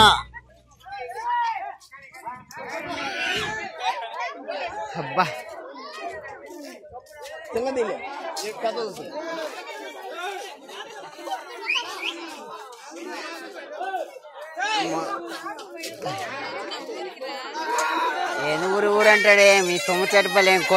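A crowd of men and women talk and chatter nearby outdoors.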